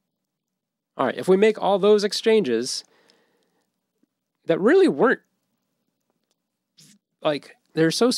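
A young man speaks casually and close to a microphone, in short bursts.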